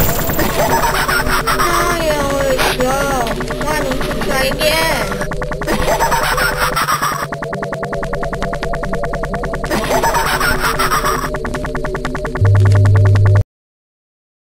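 Eerie game music plays.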